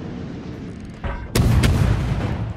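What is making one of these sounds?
Heavy ship guns fire with deep booms.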